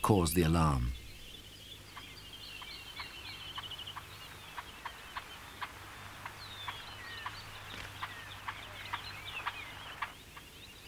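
Birds twitter and chirp in short high calls.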